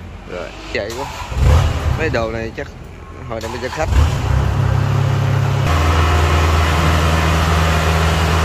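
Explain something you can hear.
A harvester's engine rumbles steadily, growing louder.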